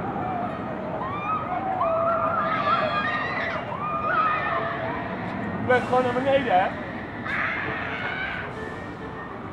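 A young woman screams shrilly from high overhead, far off.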